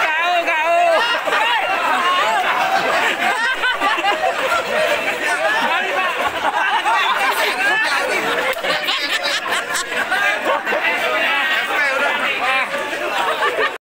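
A group of men laugh and cheer loudly close by.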